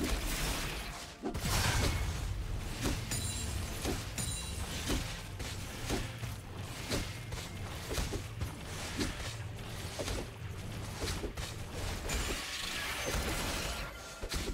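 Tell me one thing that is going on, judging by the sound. Sword strikes and magic hits thump repeatedly.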